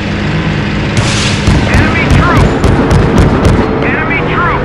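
A heavy gun fires with loud booming blasts.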